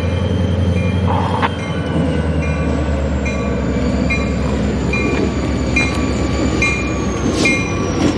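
A diesel locomotive rumbles loudly as it approaches.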